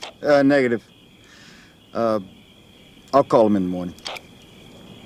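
A man speaks into a radio handset in short bursts.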